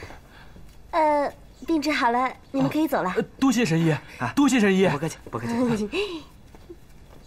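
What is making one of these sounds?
An elderly man speaks politely.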